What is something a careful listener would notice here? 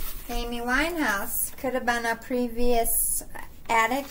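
A sheet of paper rustles in a hand.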